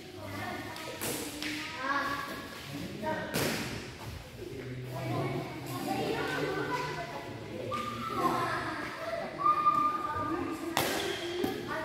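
Badminton rackets smack a shuttlecock with sharp cracks.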